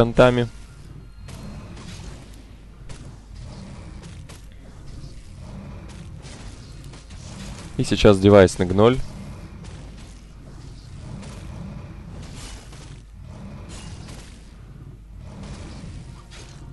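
Swords clash and strike in a busy fight.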